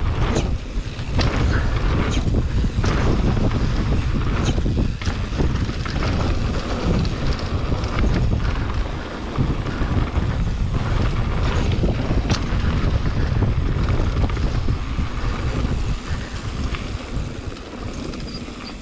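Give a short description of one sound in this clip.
Bicycle tyres rumble and crunch over a bumpy dirt trail.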